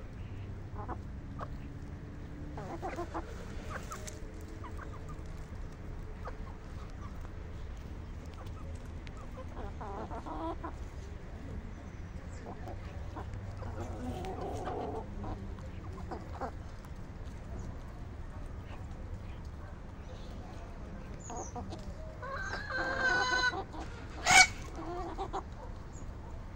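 Chickens cluck softly nearby.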